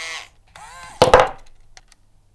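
A wire is snipped with a click.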